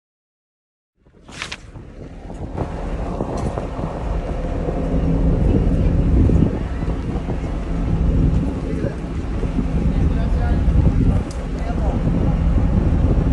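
Wind blows outdoors with rain falling.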